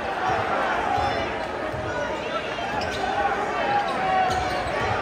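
A large crowd cheers and shouts loudly in an echoing gym.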